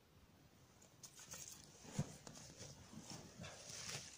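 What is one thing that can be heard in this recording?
Dry leaves rustle and crunch close by.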